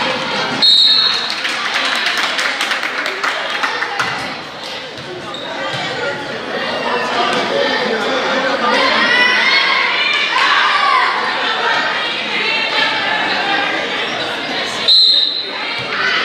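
A referee blows a whistle sharply.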